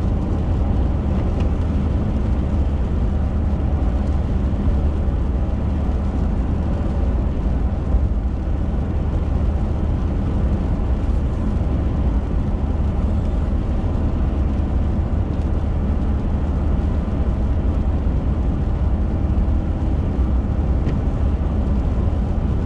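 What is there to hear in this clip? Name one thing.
A windshield wiper swipes across the glass.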